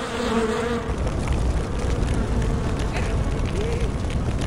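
A fire roars and crackles loudly.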